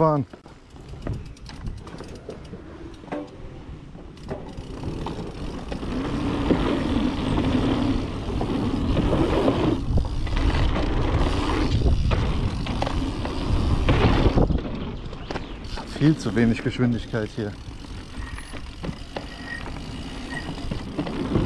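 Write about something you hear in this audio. Bicycle tyres crunch and roll on a dirt trail.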